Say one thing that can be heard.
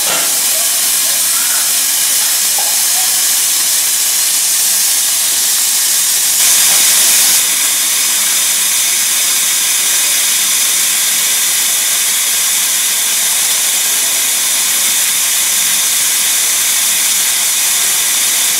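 Steam hisses steadily from a steam locomotive.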